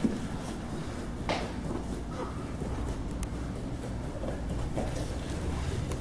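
Bare feet squeak and scuff on a mat.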